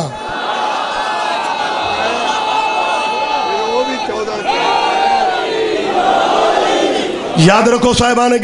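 A man speaks forcefully into a microphone over loudspeakers.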